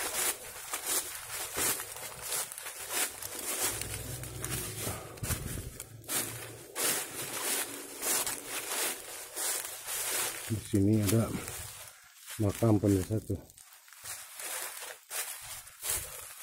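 Footsteps crunch through dry leaves at a steady walking pace.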